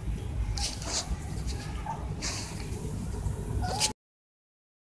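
Cats meow softly close by.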